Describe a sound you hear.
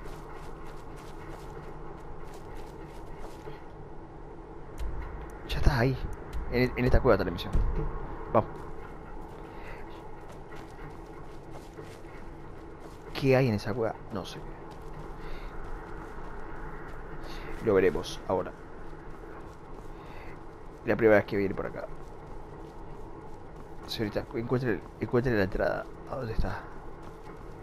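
Footsteps crunch on grass and rock.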